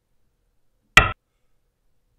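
A game stone clicks sharply onto a board once.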